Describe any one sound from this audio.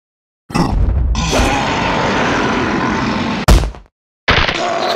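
A cartoon creature squeals loudly and shrilly.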